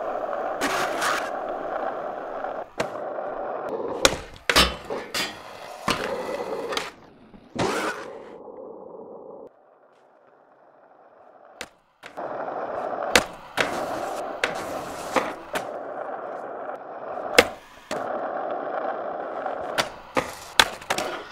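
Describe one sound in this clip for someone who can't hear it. A skateboard deck snaps and clacks sharply on landings.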